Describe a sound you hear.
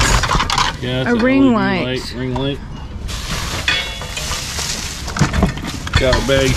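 Metal parts clank and rattle in a cardboard box.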